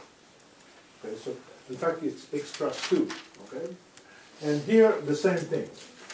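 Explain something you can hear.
An older man lectures calmly, heard in an echoing room.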